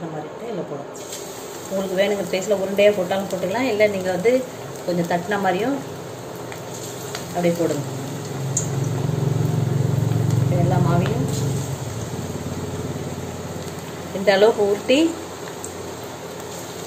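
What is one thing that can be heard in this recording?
Batter sizzles and crackles as it fries in hot oil.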